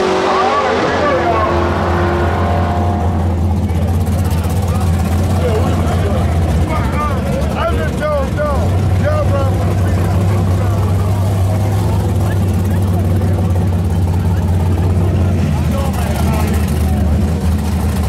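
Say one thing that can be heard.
A car engine idles nearby with a steady low rumble.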